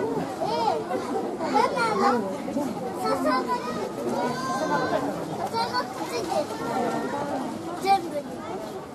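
A panda crunches and chews bamboo up close.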